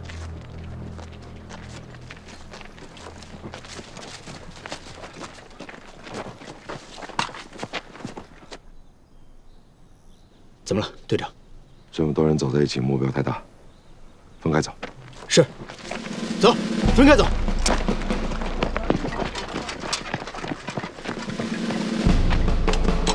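Many footsteps crunch on a dirt path.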